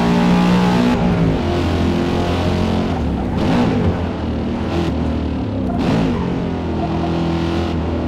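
A sports car engine drops in pitch as the car brakes and downshifts.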